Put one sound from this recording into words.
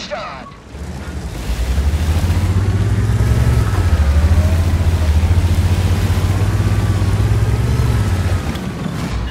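A tank engine rumbles and roars as the tank drives.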